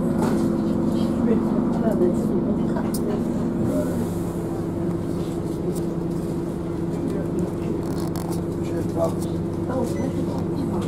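A bus engine hums steadily from inside the vehicle.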